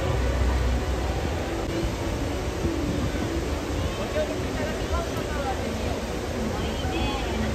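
A crowd murmurs and chatters nearby outdoors.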